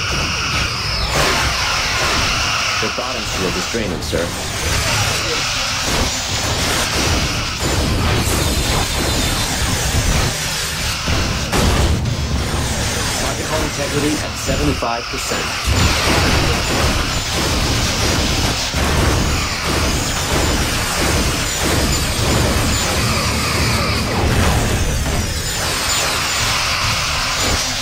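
Explosions boom against shields.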